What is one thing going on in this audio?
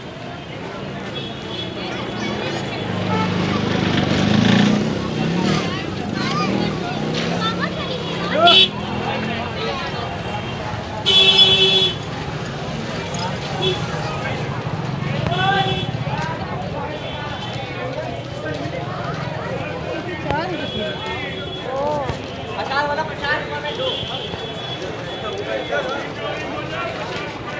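A busy street crowd chatters all around.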